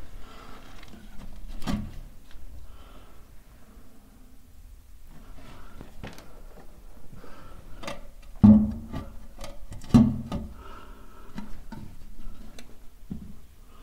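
Metal tools knock and scrape against a pipe close by.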